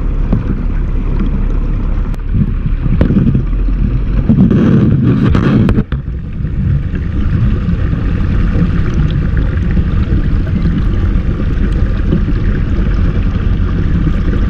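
Water churns and bubbles underwater in a tank.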